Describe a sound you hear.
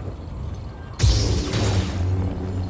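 A lightsaber ignites with a loud hiss.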